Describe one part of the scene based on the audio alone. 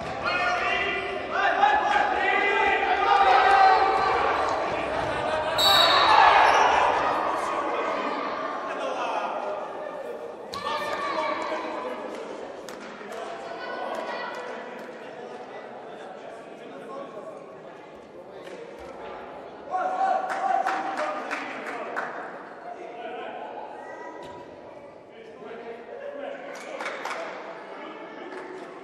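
A ball is kicked hard and thuds across an echoing indoor court.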